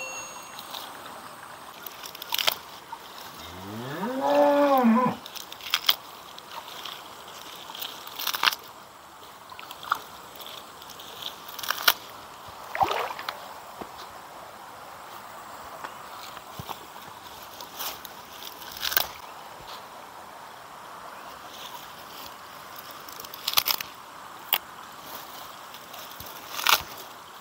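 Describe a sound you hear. Shallow water trickles and splashes around bare feet.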